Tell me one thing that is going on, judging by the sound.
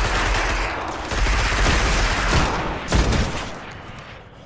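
Rapid energy gunfire blasts loudly at close range.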